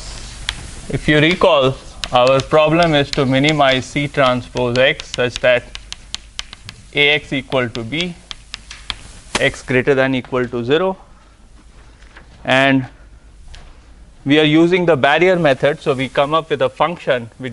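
A man lectures aloud in a large room, heard from a distance.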